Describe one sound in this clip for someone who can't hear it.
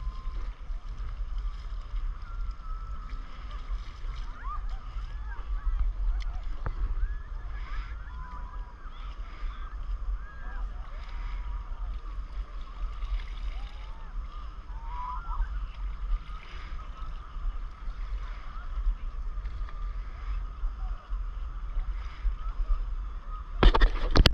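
Water laps softly against a board.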